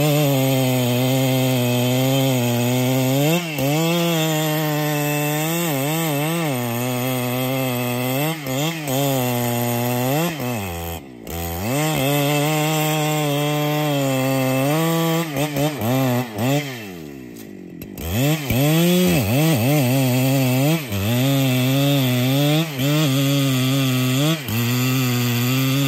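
A chainsaw engine roars loudly close by, revving up and down as it cuts into wood.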